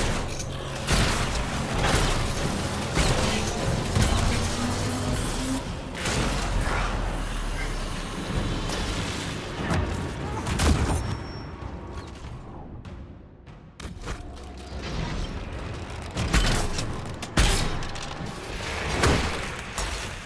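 Magic blasts crackle and boom in bursts.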